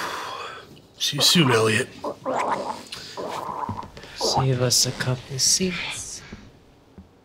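A young man speaks and laughs softly up close.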